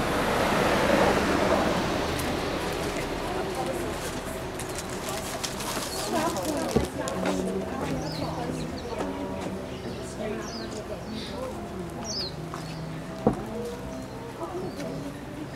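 Cars drive past and away on an asphalt street.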